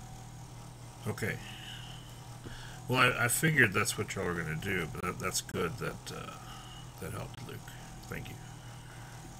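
A man speaks calmly through a computer microphone.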